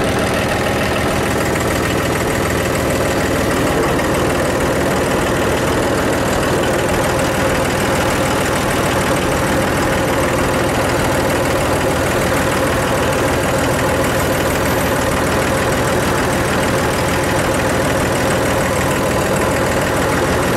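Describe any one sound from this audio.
A diesel compact tractor engine runs as the tractor drives along.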